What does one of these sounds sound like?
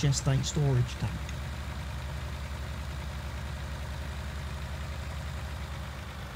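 A truck engine rumbles steadily at low speed.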